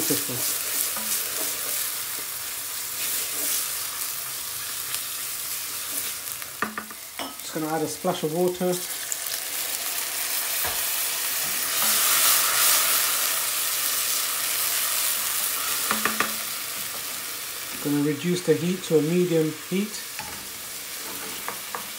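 A wooden spoon stirs and scrapes against a metal pan.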